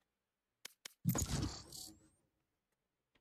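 A game menu plays a short whooshing chime as a match search begins.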